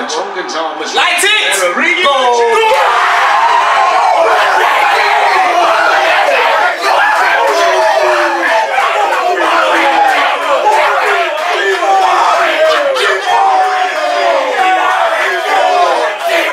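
A group of young men shout and cheer loudly together.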